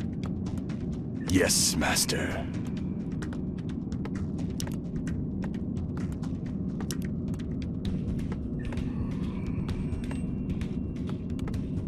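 A game's low, droning ambient music plays steadily.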